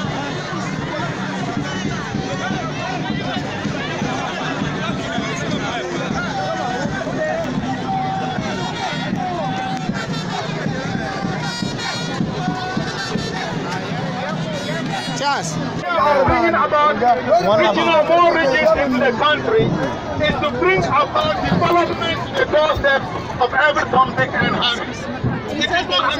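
A crowd of men and women sings and shouts close by.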